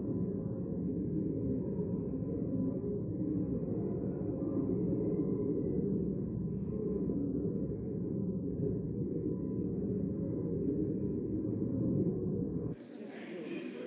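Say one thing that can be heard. Many men and women murmur and chat quietly in a large room.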